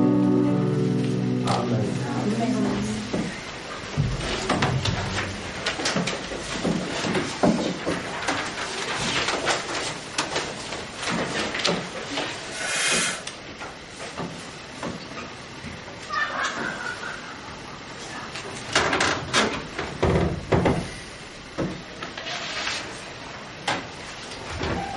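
Several adults chat and murmur nearby in a room.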